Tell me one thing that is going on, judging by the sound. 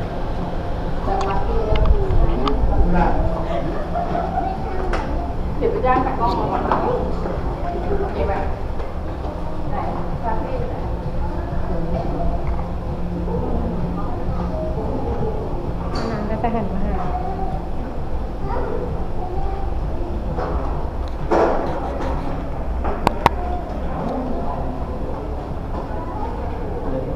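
Children and adults chatter nearby.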